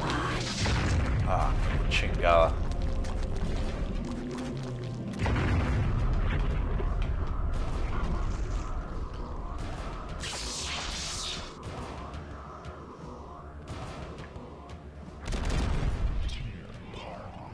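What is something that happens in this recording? A huge creature's bony legs clank and thud as it moves.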